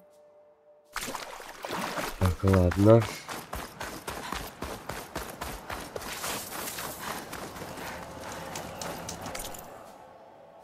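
Footsteps crunch quickly on sand.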